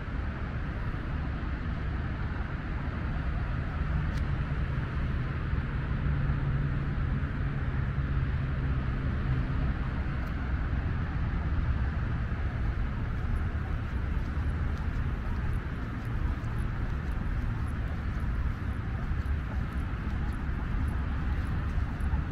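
A car engine hums steadily as the vehicle drives along a road.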